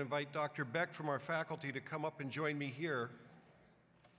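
An older man speaks calmly into a microphone in a large hall.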